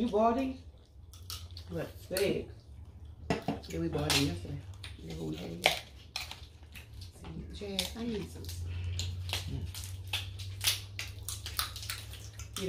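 Seafood shells crack and crunch in hands.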